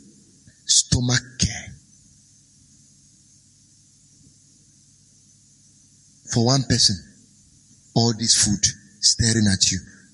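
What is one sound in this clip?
A man speaks calmly and clearly into a microphone, in short phrases with pauses.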